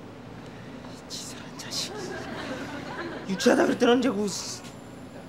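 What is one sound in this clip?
A young man speaks tensely and forcefully up close.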